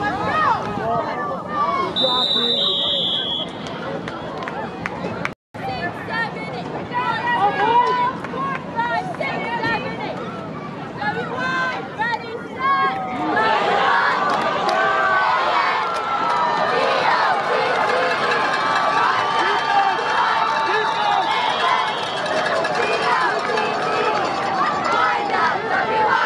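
A crowd of spectators cheers and shouts from the stands.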